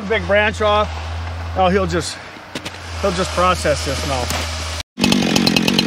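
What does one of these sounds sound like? A chainsaw idles with a low steady rumble.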